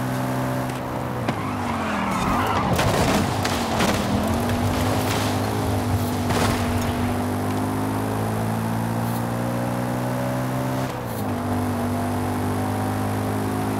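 A car engine drops in pitch, then revs back up.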